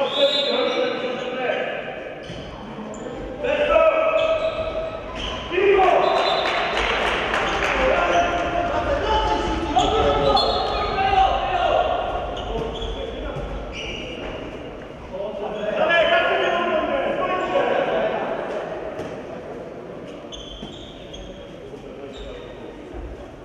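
A handball bounces with thuds on a hard floor in an echoing hall.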